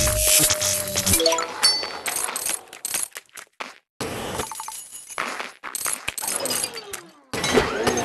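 Coins jingle as they are collected.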